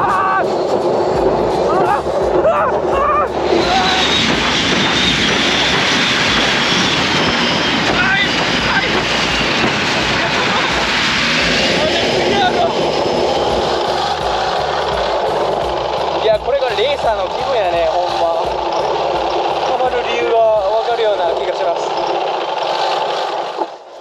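A boat engine roars loudly and steadily throughout.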